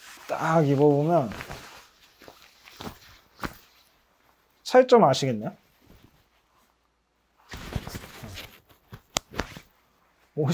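A nylon jacket rustles as it is handled.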